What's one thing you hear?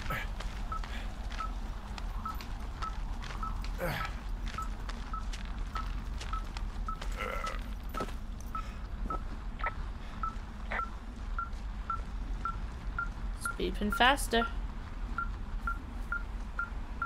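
A handheld device beeps steadily in quick, even pulses.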